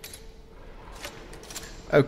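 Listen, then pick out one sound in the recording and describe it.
A gun's metal parts click as it is handled.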